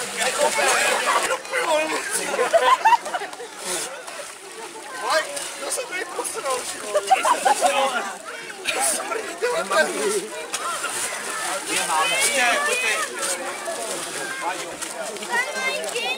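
Men shout and laugh with excitement close by.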